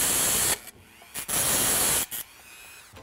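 A rotary tool grinds metal with a high whine.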